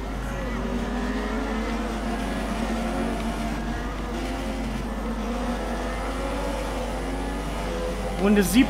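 A racing car engine whines at high speed, shifting up through the gears.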